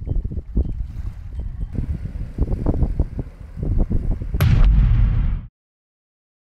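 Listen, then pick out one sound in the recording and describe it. A small outboard motor hums as a boat pulls away.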